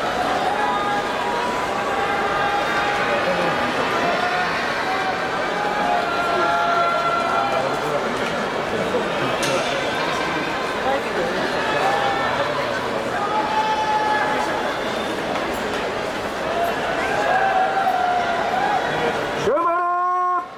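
A large crowd murmurs and calls out in a big echoing hall.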